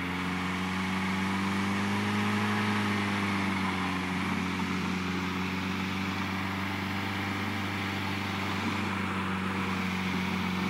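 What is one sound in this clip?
A car engine roars loudly and steadily close by.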